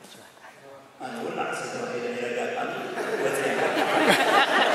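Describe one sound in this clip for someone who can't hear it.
A man speaks into a microphone, amplified through loudspeakers in an echoing hall.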